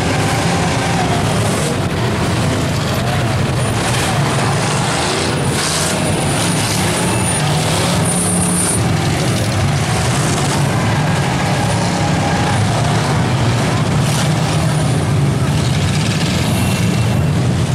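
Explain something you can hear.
Car engines rumble and rev loudly nearby.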